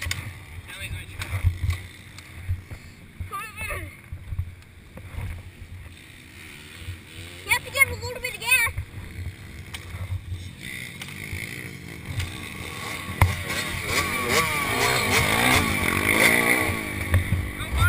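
A dirt bike engine idles and revs close by.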